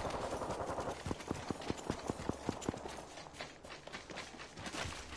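Footsteps thud quickly and evenly on the ground.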